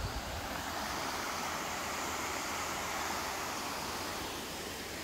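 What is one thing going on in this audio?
A shallow stream rushes over rocks.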